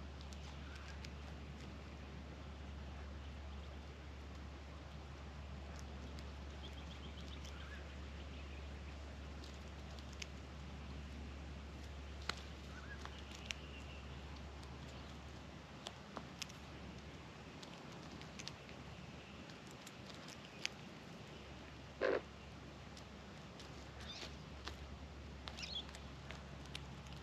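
Birds give soft warbling calls now and then.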